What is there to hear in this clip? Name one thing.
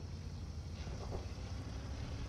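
A distant explosion booms.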